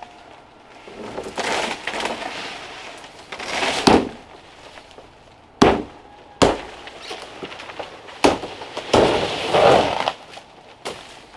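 Leaves and fronds rustle.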